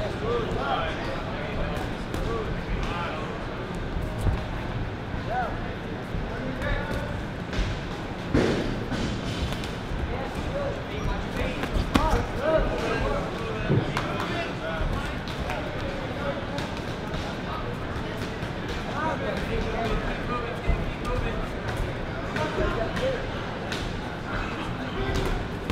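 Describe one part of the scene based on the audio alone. A crowd of spectators murmurs and chatters nearby in an echoing hall.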